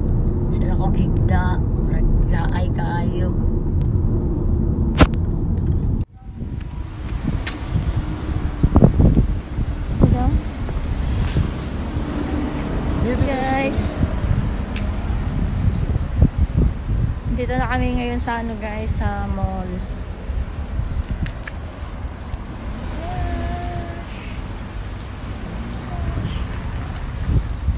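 A woman speaks close by, calmly and chattily.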